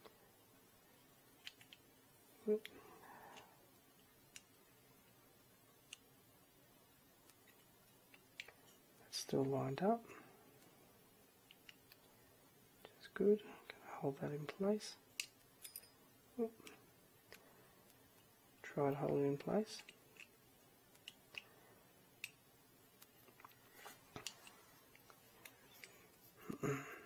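A hex screwdriver turns a screw into a plastic part with faint clicks.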